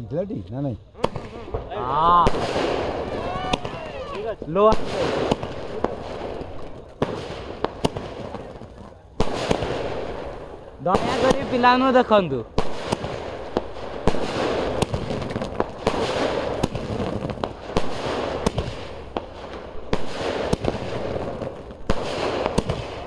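A firework cake fires shots into the sky one after another outdoors.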